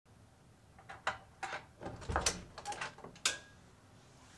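A door latch clicks and a door creaks open.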